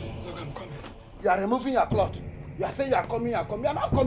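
A middle-aged man speaks earnestly, close by.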